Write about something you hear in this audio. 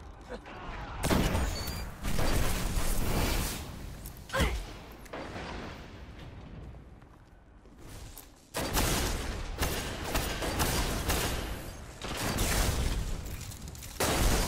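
Guns fire in a video game.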